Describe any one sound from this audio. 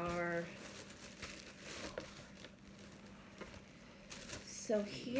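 Plastic wrapping rustles and crinkles close by.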